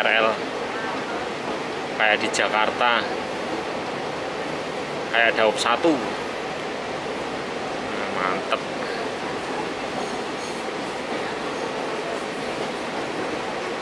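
A train rolls along the tracks with a steady rumble.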